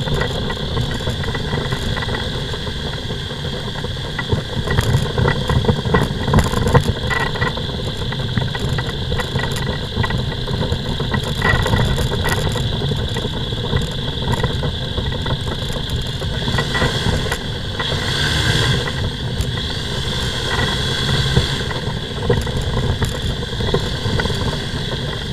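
Wind buffets and rumbles against the microphone.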